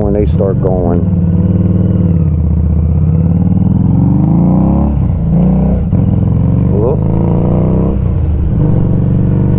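A motorcycle engine revs up and down as it shifts gears.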